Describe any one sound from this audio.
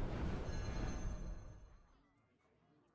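A booming explosion rumbles and slowly fades.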